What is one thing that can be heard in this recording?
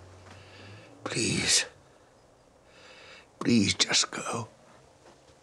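A woman speaks sharply close by.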